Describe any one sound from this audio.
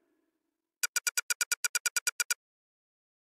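A video game plays a series of rapid electronic beeps as text types out.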